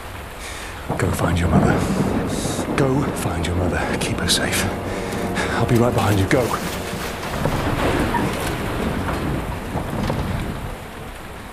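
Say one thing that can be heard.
A man speaks urgently in a low voice.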